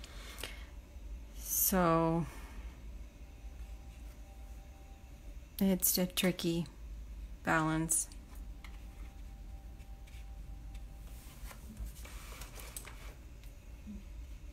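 A brush strokes softly across paper.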